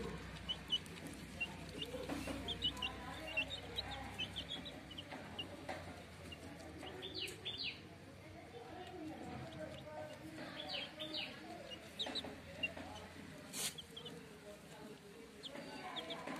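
Chicks cheep with high, short peeps throughout.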